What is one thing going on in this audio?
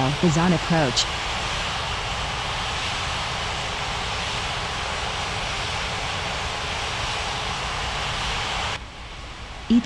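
A jet engine roars steadily nearby.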